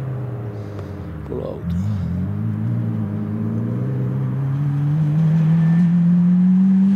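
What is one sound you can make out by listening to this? A rally car engine revs hard as it accelerates toward the listener.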